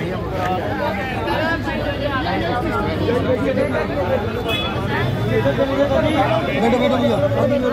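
A crowd of men talk and shout over each other close by.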